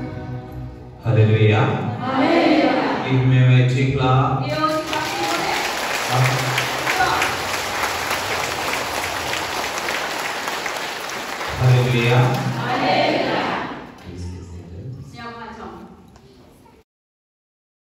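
A large crowd of men and women prays and sings loudly together in an echoing hall.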